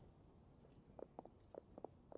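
Footsteps tap softly on the ground.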